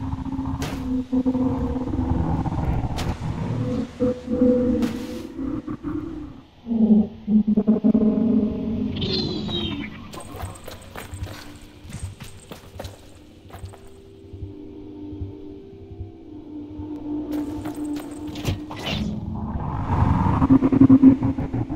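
A hover bike engine hums and drones, rising and falling.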